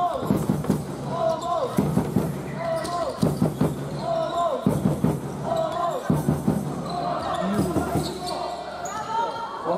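A basketball bounces repeatedly on a wooden court.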